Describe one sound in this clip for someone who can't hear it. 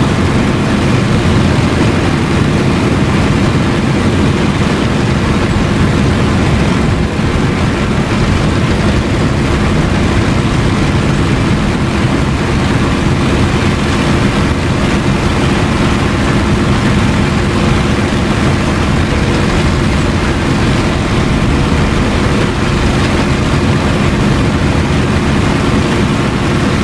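Wind rushes past a plane's cockpit.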